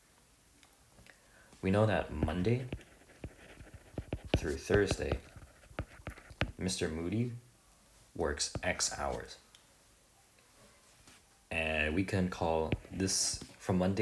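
A stylus taps and scrapes softly on a glass tablet.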